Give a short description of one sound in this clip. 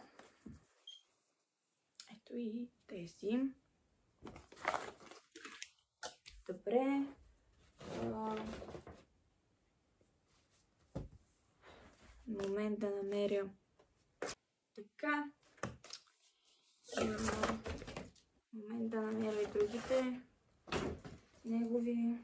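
Fabric rustles as clothes are handled.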